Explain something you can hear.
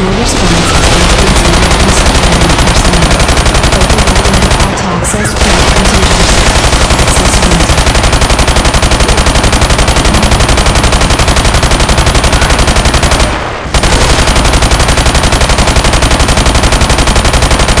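Automatic guns fire in rapid, nonstop bursts.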